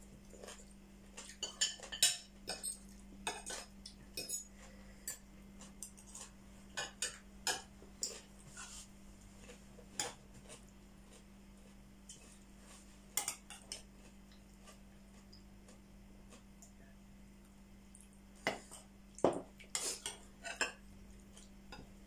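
Spoons and forks clink and scrape against plates.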